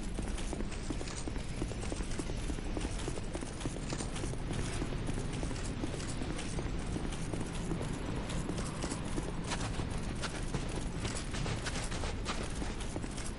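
Armoured footsteps crunch quickly on snow and stone.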